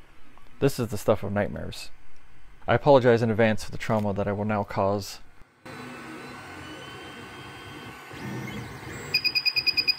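A printer's motors whir and hum steadily.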